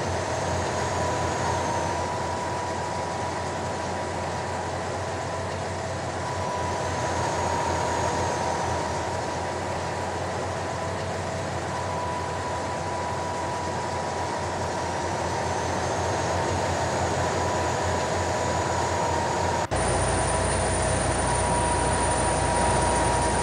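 Tyres roll on a motorway.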